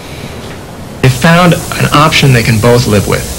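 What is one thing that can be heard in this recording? A man speaks calmly over a loudspeaker.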